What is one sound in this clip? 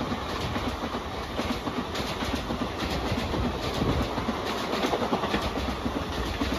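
A passenger train rushes past at high speed with a roar.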